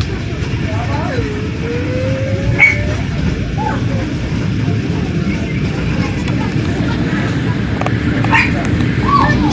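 A vehicle rumbles steadily as it drives along.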